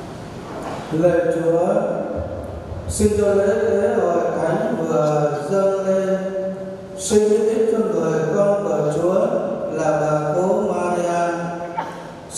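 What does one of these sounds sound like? An elderly man chants through a microphone.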